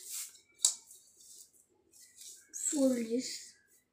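A ruler scrapes across paper.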